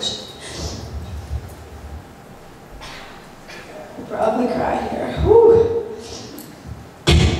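A young woman speaks into a microphone through a loudspeaker, with a room echo.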